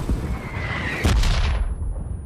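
Gunshots crack loudly.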